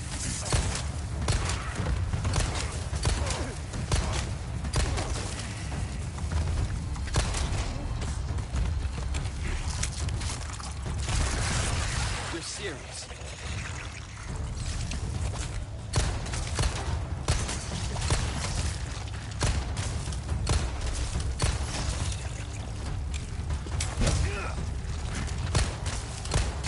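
A handgun fires shot after shot.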